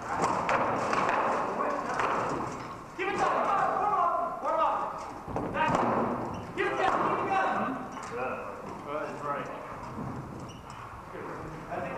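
A crowd of men shout and cheer in a large echoing hall.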